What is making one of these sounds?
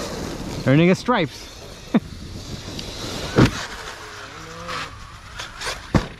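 A small remote-controlled car's electric motor whines.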